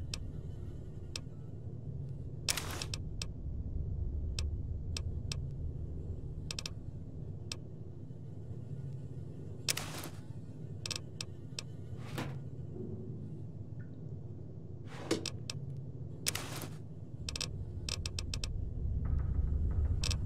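Interface clicks sound sharply as items are chosen and moved.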